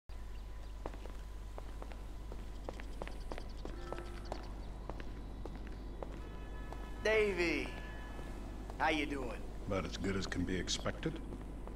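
Footsteps tap lightly on a stone floor.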